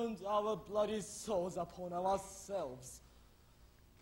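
A young man sings out loudly in a long, wavering voice.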